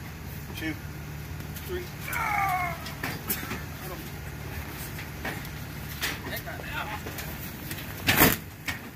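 Men talk quietly nearby outdoors.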